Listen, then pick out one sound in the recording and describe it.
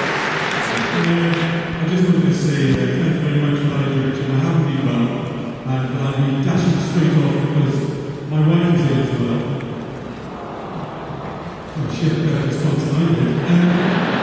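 A man speaks calmly and warmly into a microphone over loudspeakers.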